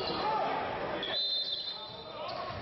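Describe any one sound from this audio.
Sneakers squeak on a hard floor in a large echoing hall.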